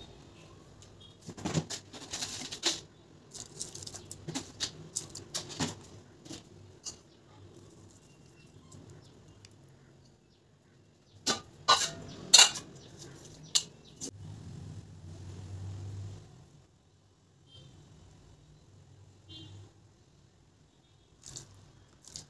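A pot of thick liquid bubbles and simmers.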